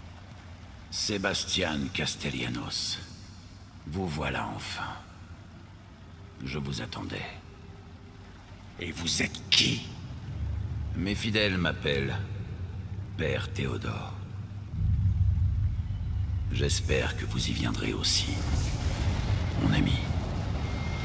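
A man speaks slowly and calmly in a deep voice.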